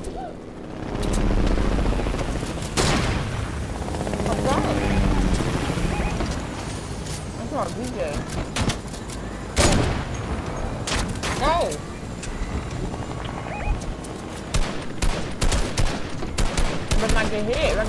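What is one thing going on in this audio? A helicopter engine roars and thumps steadily.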